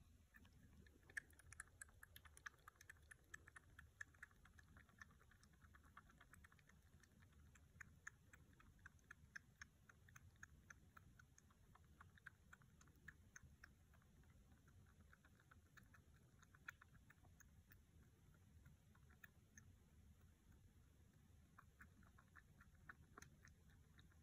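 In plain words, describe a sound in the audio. A kitten suckles noisily at a bottle with quick wet clicks and smacks.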